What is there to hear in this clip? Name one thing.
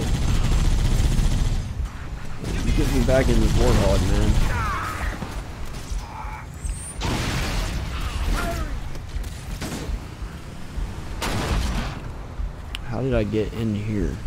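Gunfire and explosions rumble from a video game.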